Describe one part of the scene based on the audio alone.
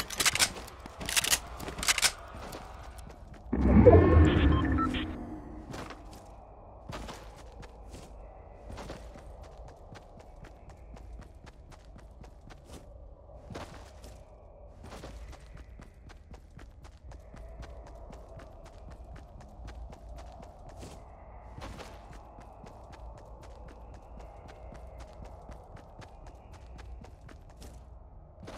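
Footsteps patter quickly on grass as a game character runs.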